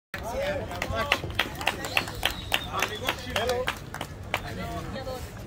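Spectators clap their hands in quick bursts.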